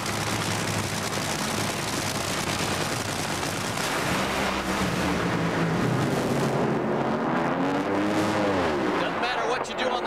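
Drag racing engines roar loudly at full throttle.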